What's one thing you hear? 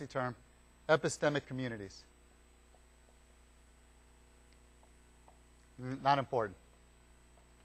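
A man speaks calmly through a microphone in short phrases.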